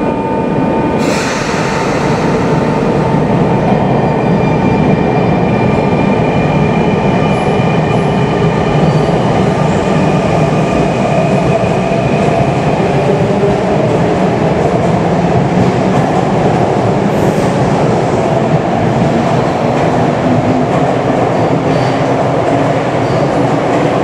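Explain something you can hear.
A subway train rumbles and whines as it pulls away, echoing in an underground station.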